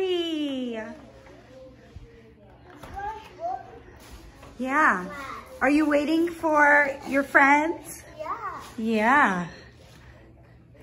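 A little girl talks excitedly close by.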